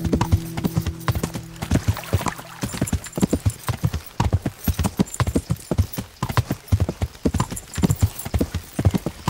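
A horse's hooves clop quickly on a dirt track.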